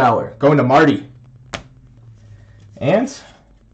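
A card slides into a thin plastic sleeve with a soft rustle.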